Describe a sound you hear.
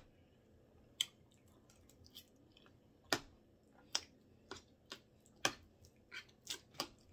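A fork clicks and scrapes against a plate.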